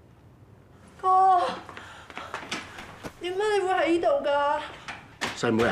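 A young woman speaks loudly with animation close by.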